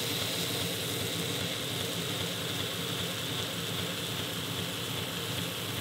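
A belt sander runs with a steady whirring hum.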